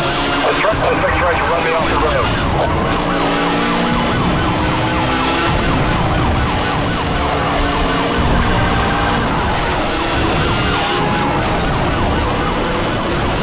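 A sports car engine roars at high speed.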